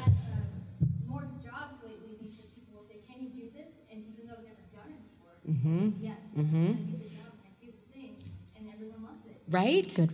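A woman talks with animation into a microphone.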